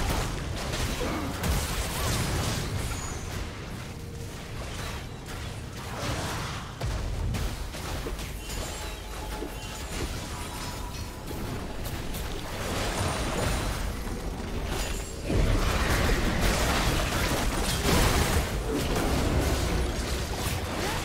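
Spell effects whoosh and crackle.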